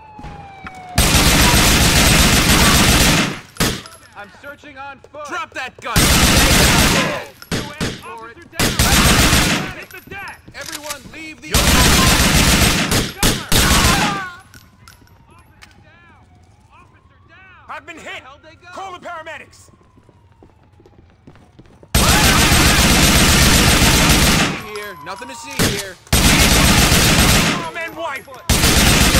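A rifle fires loud bursts of automatic gunfire.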